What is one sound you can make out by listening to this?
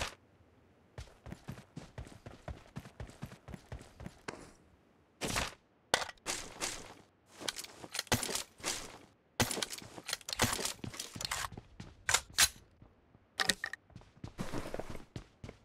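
Quick footsteps run across dirt and then a wooden floor.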